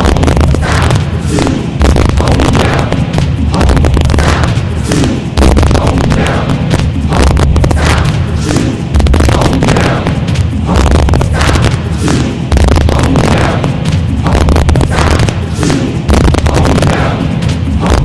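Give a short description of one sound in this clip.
A large group of people chants together in a steady, repeating rhythm, heard through loudspeakers in a large echoing hall.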